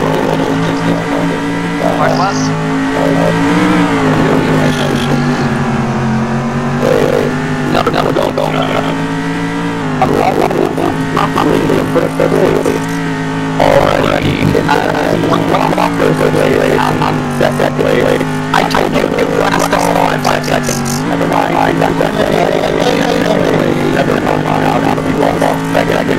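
A race car engine drones at high revs, dipping briefly in pitch at gear changes.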